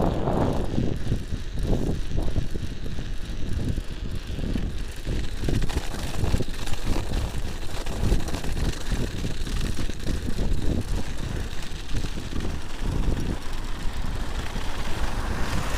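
Bicycle tyres crunch and hiss over packed snow.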